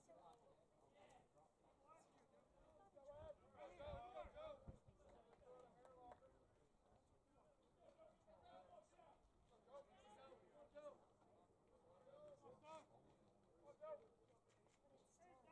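Men talk and call out outdoors.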